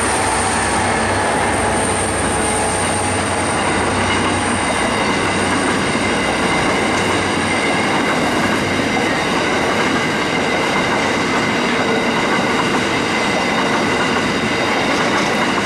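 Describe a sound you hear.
Loaded coal wagons rumble and clatter past on steel rails.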